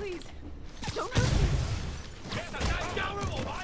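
Heavy punches thud in a scuffle.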